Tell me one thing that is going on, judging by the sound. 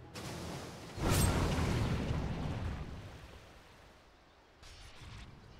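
Game spell effects burst and crackle during a fight.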